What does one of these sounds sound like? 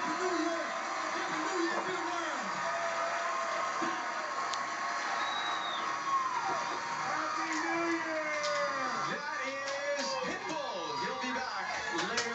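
A parrot squawks, chatters and makes warbling calls close by.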